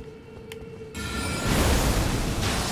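A magical burst whooshes loudly.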